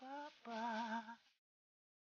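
A short, bright victory jingle plays.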